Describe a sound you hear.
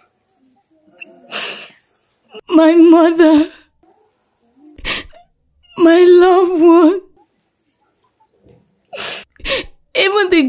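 A young woman wails and sobs loudly, close by.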